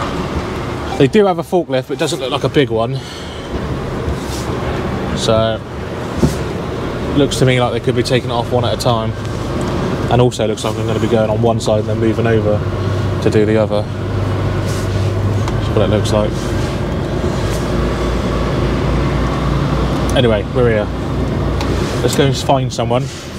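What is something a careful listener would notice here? A man talks calmly and close by, pausing now and then.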